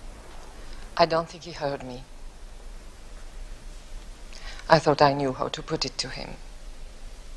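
A woman speaks firmly and coldly nearby.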